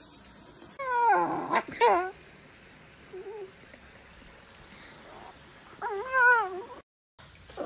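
A small dog whines in high, wavering bursts.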